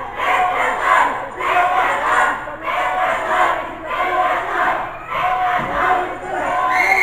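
A crowd chants rhythmically.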